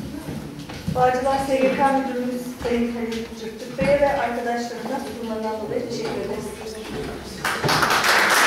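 A young woman speaks into a microphone over loudspeakers.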